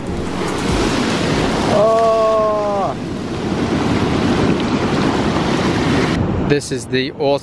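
Foamy surf rushes around bare feet.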